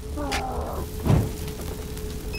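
Flames burst up with a sudden whoosh.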